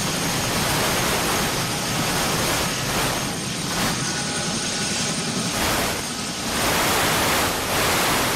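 A helicopter's turbine engine whines loudly and steadily close by.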